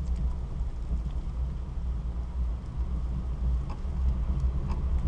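Wind buffets loudly against the microphone outdoors.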